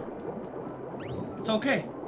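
Bubbles gurgle and pop underwater.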